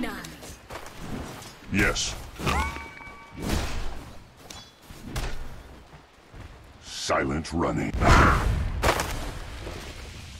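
Game swords clash and strike in a fight.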